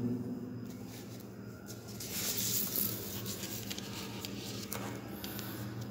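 A page of paper rustles as it is turned.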